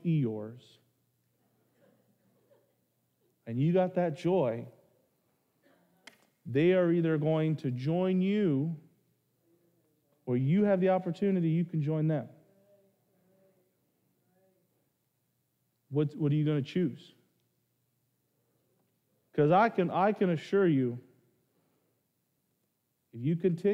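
A man speaks with animation through a microphone, pausing between phrases.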